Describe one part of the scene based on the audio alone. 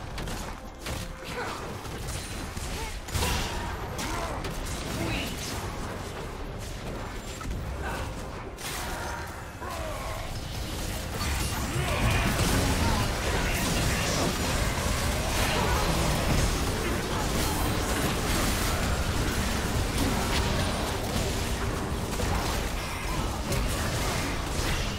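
Magic spells whoosh, crackle and burst in a fast fantasy battle.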